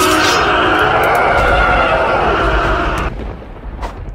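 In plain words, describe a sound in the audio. Sparkling magic effects shimmer and whoosh in a game.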